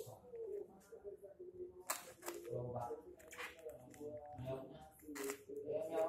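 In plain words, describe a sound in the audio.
A knife slices through packing tape.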